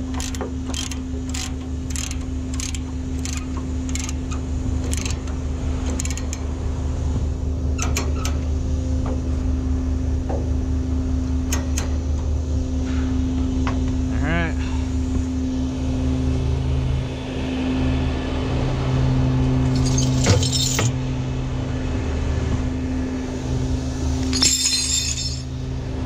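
A large truck engine idles with a steady low rumble.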